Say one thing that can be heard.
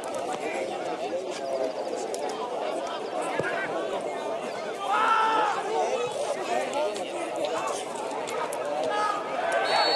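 Men shout and call out to each other across an open outdoor field.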